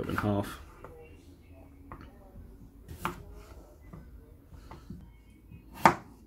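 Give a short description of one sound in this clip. A knife cuts through potatoes and knocks on a plastic cutting board.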